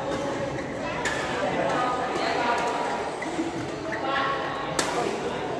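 Shuttlecocks are struck with rackets, with sharp pops.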